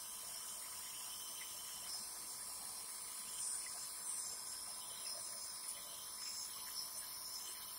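A nebulizer compressor hums and hisses steadily.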